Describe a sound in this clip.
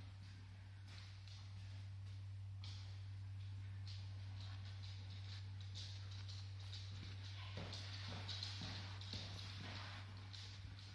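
A dog's claws click and patter on a hard floor.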